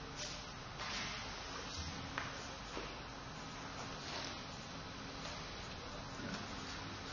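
Heavy cloth rustles as it is folded.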